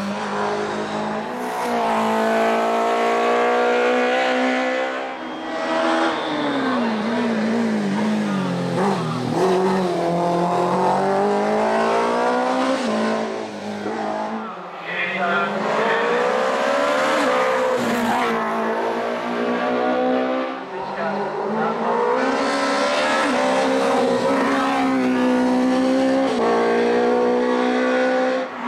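A racing car engine roars loudly, revving high and shifting gears as it speeds past close by.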